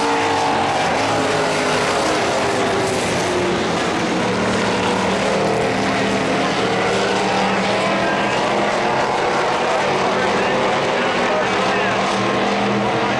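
Race car engines roar loudly and rev.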